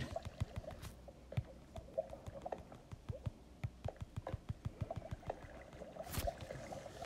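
Quick soft clicks tap in a rapid series.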